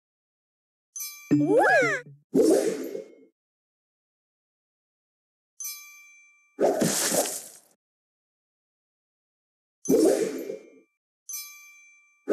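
Short chimes ring out as matches are made.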